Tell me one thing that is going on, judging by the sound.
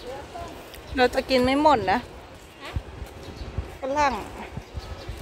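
A young girl speaks in a high voice.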